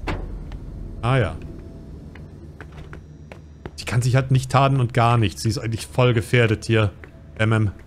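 Footsteps climb concrete stairs.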